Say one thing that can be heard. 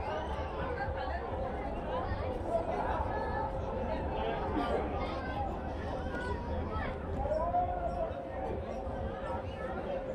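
A crowd chatters and murmurs around, with many voices overlapping.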